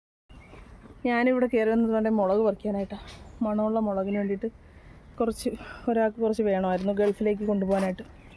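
A woman speaks calmly, close to the microphone.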